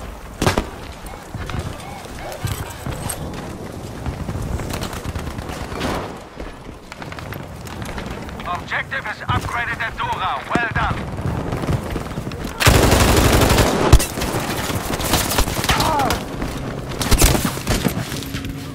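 Guns fire in sharp bursts.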